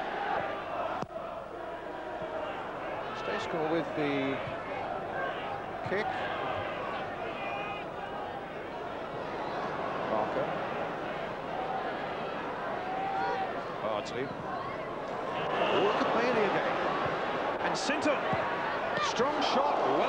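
A large stadium crowd roars and murmurs steadily, swelling louder near the end.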